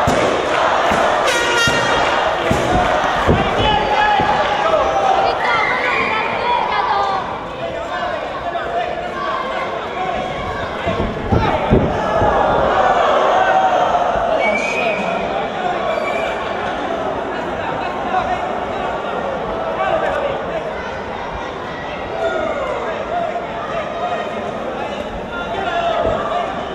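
A crowd shouts and cheers throughout a large echoing hall.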